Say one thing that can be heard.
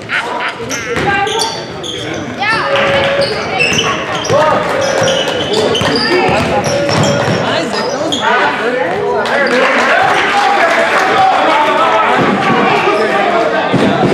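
A crowd cheers and shouts in an echoing gym.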